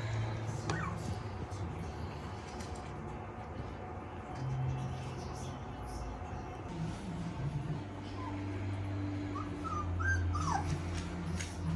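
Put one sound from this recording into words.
Puppies whimper and yelp in short high squeaks.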